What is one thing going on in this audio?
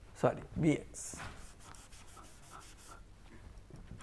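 A cloth wipes rhythmically across a board.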